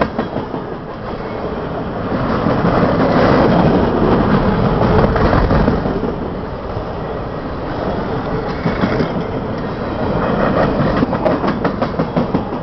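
Steel wheels clack rhythmically over rail joints.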